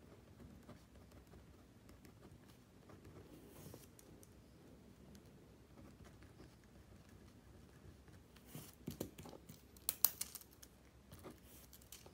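An eraser rubs against paper.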